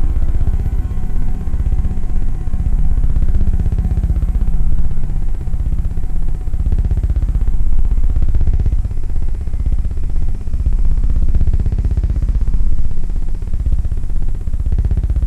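Electronic music plays with a deep, steady pulsing beat and slowly sweeping tones.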